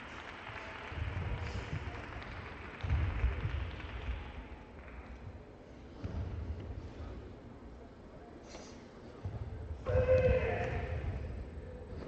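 Bare feet thump on a mat.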